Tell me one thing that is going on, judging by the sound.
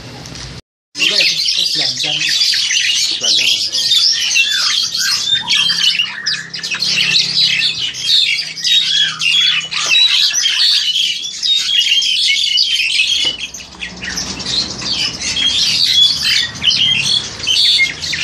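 A black-collared starling sings a loud, chattering, whistling song close by.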